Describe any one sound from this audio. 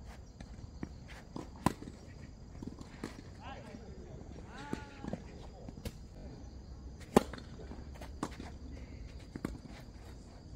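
A tennis ball is struck sharply with a racket, back and forth in a rally.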